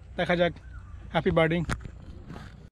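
A man speaks calmly and close to the microphone.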